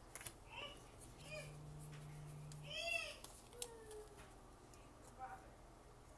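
Playing cards slide and flick against each other as they are shuffled.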